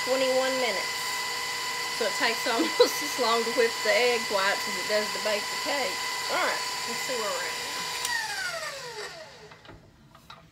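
A stand mixer whirs steadily, then winds down and stops.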